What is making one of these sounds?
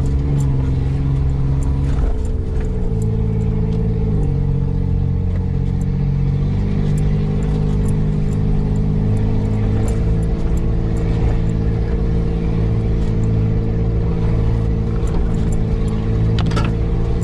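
A vehicle engine hums low and steady, shifting in pitch as it drives.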